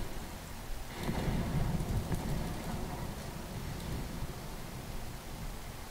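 Explosions boom and rumble in a loud burst.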